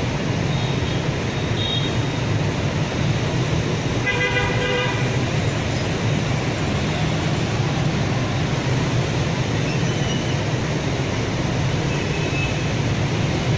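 Dense traffic of motorbikes and cars roars steadily along a busy road outdoors.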